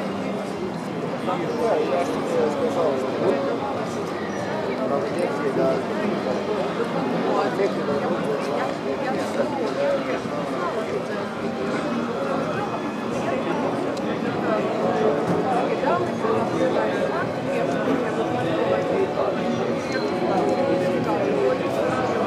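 Many voices of a crowd chatter and murmur outdoors.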